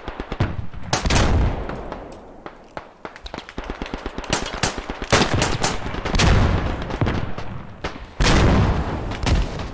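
Loud explosions boom nearby.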